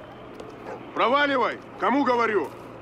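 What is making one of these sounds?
A young man shouts angrily nearby.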